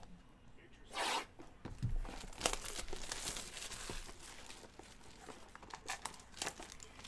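A cardboard box rustles and scrapes as it is opened.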